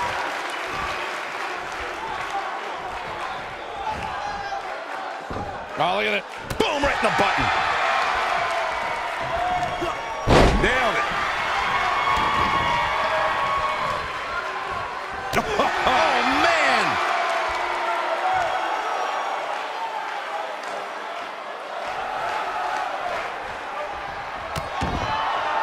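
A crowd cheers and roars throughout in a large arena.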